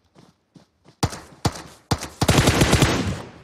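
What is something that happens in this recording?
Rifle shots fire in loud, rapid bursts.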